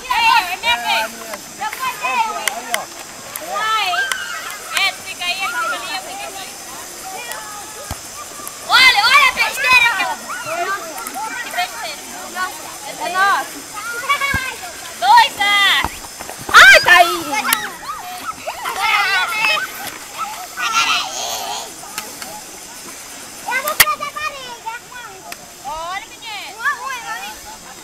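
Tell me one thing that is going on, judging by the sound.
Young people shout and chatter with animation outdoors.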